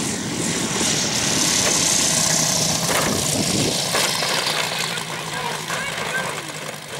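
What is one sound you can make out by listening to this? A model airplane engine roars past close by, then fades.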